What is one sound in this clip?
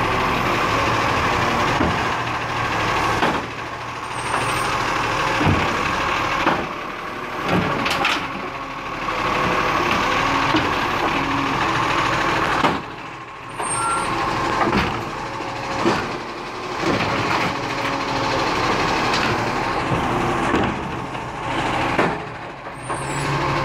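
A garbage truck engine runs loudly close by.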